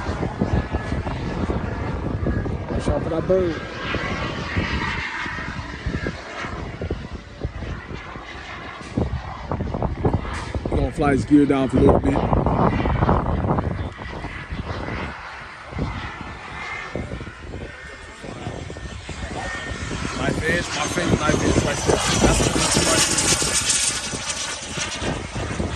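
A jet engine roars overhead, swelling and fading as the plane passes.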